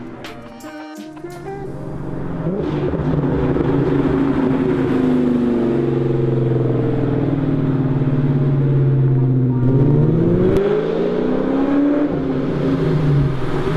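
A car engine roars loudly as the car accelerates past, then fades into the distance.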